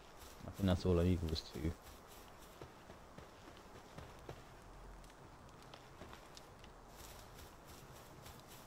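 Footsteps patter quickly over grass and wooden boards.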